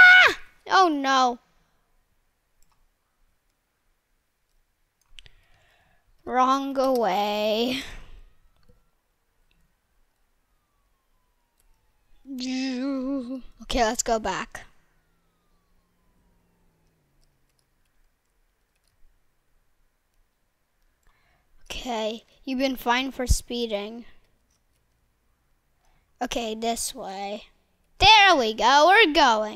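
A young boy talks with animation into a microphone, in short bursts.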